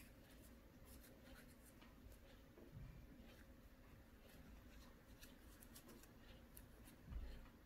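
Small soft clicks and rubs come from hands handling a needle and yarn close by.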